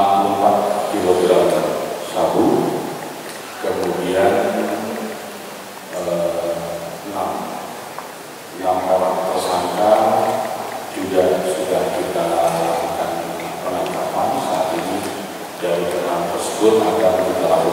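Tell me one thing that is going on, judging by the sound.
A middle-aged man speaks steadily into a microphone, with pauses between phrases.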